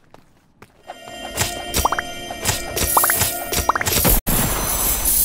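Coins chime in quick bright dings as they are picked up in a video game.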